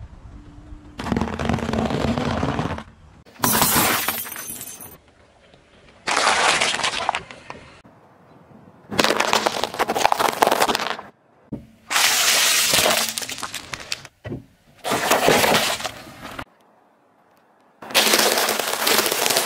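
A car tyre rolls over and crushes crunchy food with loud crackling.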